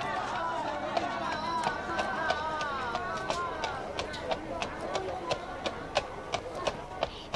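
A horse's hooves clop slowly on a hard street.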